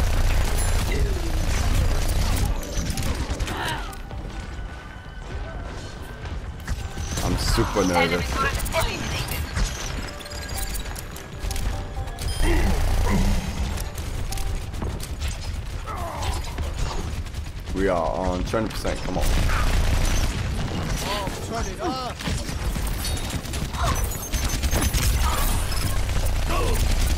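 Game gunfire rattles in rapid bursts.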